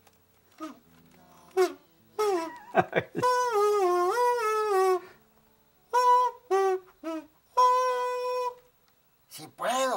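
An elderly man plays a buzzing, kazoo-like melody on a comb wrapped in plastic, in short phrases.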